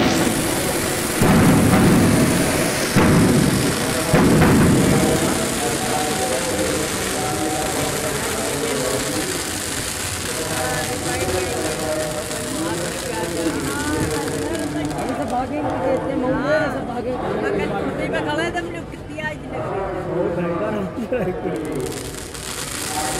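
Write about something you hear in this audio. Fireworks bang and crackle close by.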